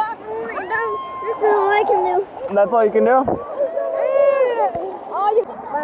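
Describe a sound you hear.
A small child babbles and squeals close by.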